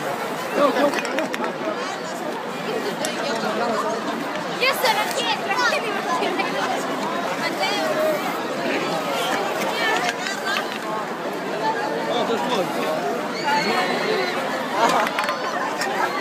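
Children shout and squeal in high voices nearby.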